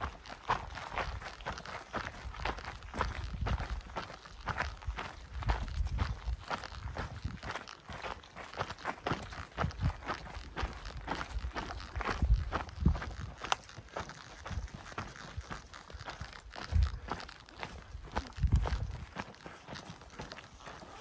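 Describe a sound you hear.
Footsteps crunch on a dirt forest trail.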